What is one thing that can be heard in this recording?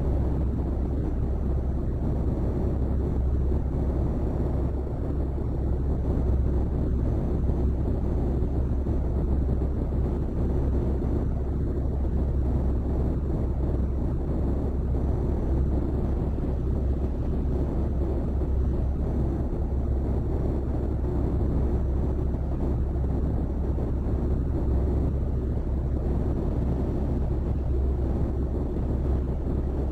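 Tyres roll on a road with a steady rush.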